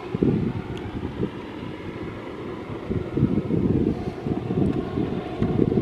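A diesel-electric locomotive rumbles in the distance, labouring up a grade with a heavy freight train.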